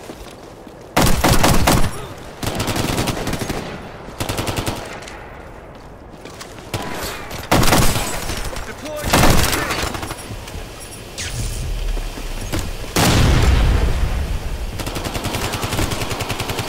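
Automatic rifles fire in loud rapid bursts.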